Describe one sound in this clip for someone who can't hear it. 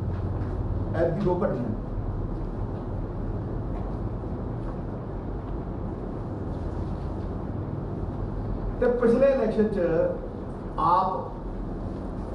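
A middle-aged man speaks calmly into microphones, in short bursts.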